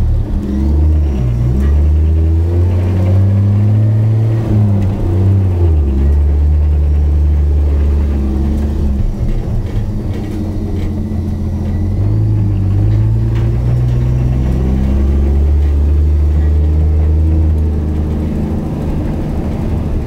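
A car rattles as it drives over bumpy grass.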